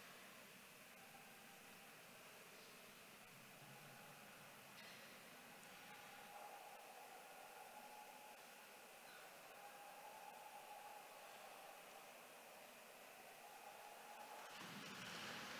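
A man chants slowly into a microphone, echoing through a large hall.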